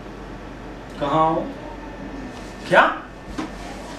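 A young man speaks into a phone nearby.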